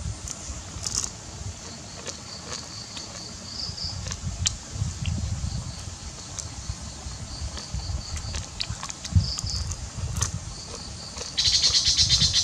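A boy chews crunchy food with his mouth close by.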